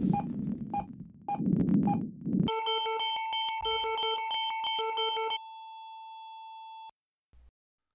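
Electronic music with a steady beat and bright synth tones plays, then stops.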